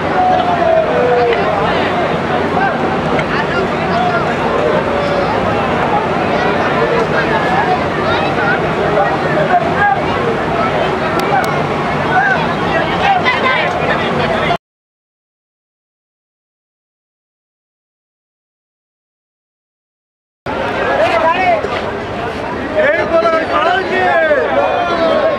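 A crowd of men shout and call out to each other outdoors.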